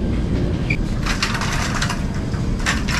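A wire laundry cart rattles as it rolls across a tiled floor.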